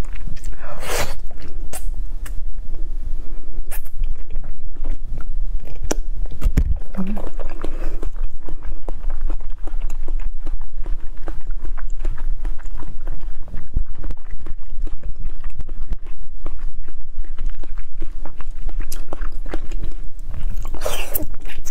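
A young woman slurps soft candy close to a microphone.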